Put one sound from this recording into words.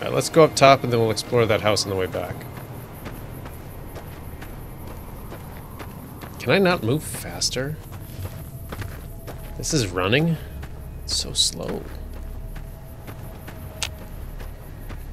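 Footsteps crunch steadily on gravel.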